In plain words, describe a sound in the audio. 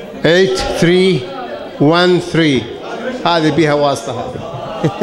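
An elderly man speaks loudly through a microphone in an echoing room.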